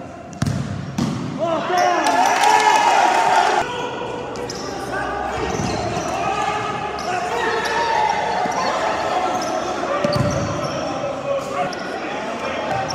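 Young players shout to each other in a large echoing hall.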